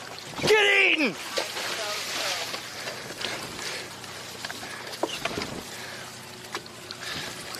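Water splashes and laps against a boat's hull.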